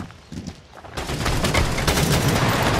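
Rapid gunfire rattles close by.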